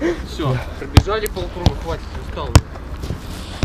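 A football thumps sharply as it is kicked.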